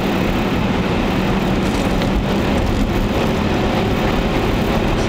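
A car engine roars steadily from inside the car as it speeds along.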